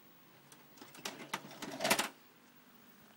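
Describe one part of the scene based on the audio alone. A plastic videotape case clicks and rattles as it is handled.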